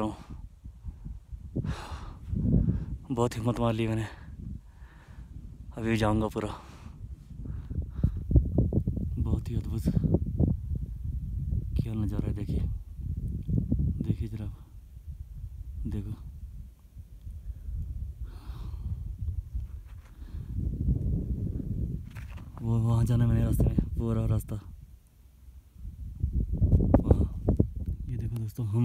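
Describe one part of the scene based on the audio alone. A man speaks close to the microphone, narrating calmly.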